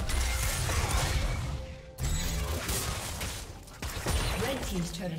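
Magic spells whoosh and blast in a fast video game fight.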